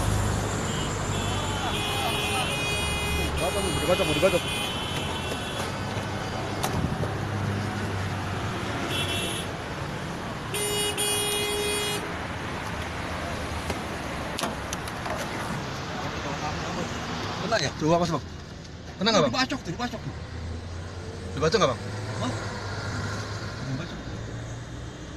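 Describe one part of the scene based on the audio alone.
A car drives along a road with a steady low rumble of engine and tyres.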